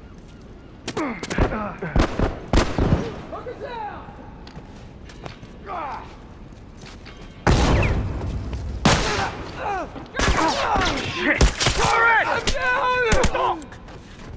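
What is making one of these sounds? Rifle shots ring out in bursts.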